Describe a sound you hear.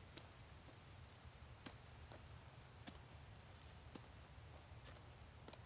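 Footsteps crunch slowly on dry ground.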